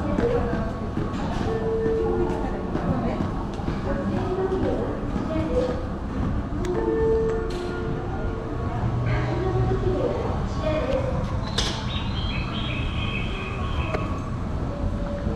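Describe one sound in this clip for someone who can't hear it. An escalator hums and rattles steadily.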